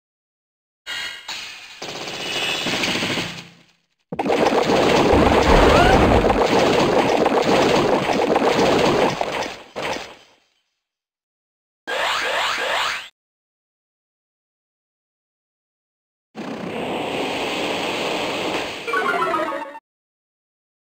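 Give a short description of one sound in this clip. Game attack effects whoosh and crash loudly.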